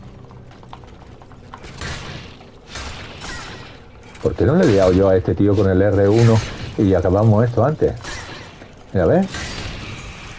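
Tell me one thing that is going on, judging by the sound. Metal blades strike and clang in a fight.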